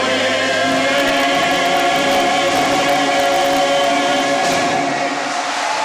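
An elderly man sings through a microphone.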